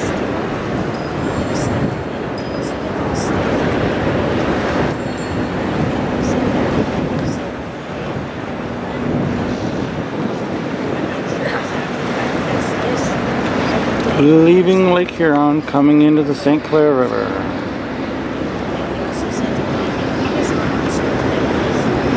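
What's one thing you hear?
Small waves lap gently on open water.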